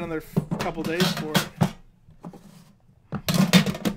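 A metal tin lid scrapes and clatters as it is lifted off.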